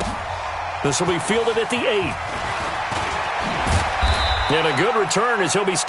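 Football players collide with heavy thuds.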